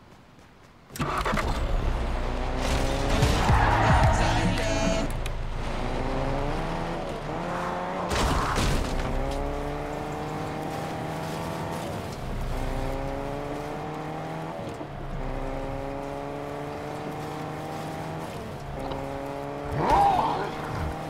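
A car engine starts and revs, shifting up through gears as it speeds along.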